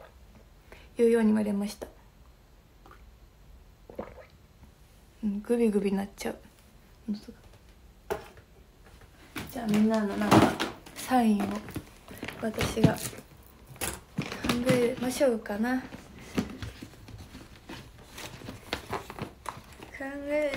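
A young woman talks casually and close by, in short bursts.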